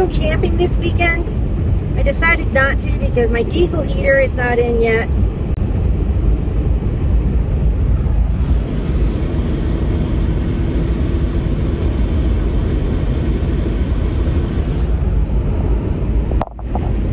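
A car drives steadily along a road with a low rumble of tyres and engine.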